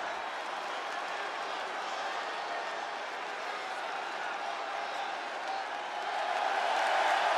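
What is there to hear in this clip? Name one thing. A large arena crowd cheers and roars steadily, growing louder near the end.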